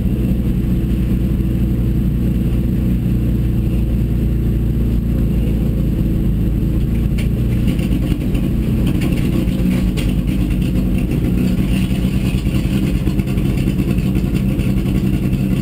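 A race car engine roars loudly and revs up and down.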